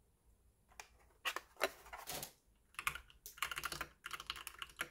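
Keyboard keys clack rapidly under typing fingers.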